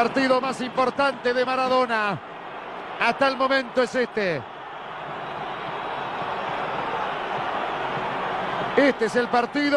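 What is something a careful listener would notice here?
A large stadium crowd roars and chants in the distance.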